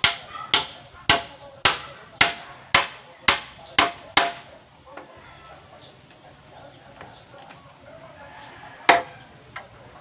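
A hammer strikes a wooden pole in quick, steady blows outdoors.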